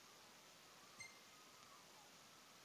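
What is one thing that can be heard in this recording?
A small lure plops into calm water.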